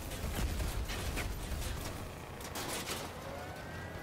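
Explosions boom and crackle loudly.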